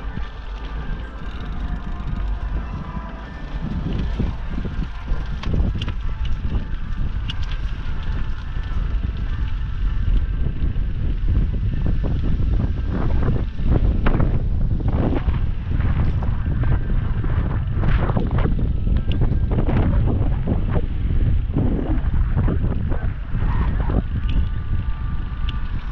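Bicycle tyres roll over a path and a road.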